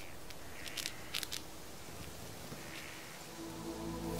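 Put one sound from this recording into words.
A squirrel nibbles on a nut with quick, soft crunches.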